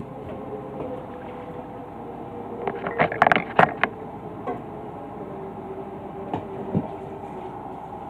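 A metal pot rattles as it is handled.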